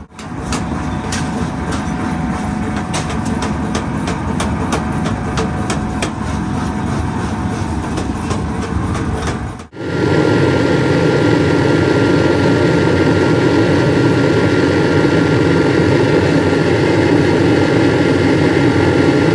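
A furnace fire roars steadily.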